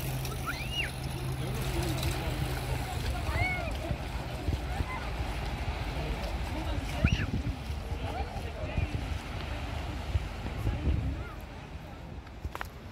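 Small waves wash gently onto a sandy shore.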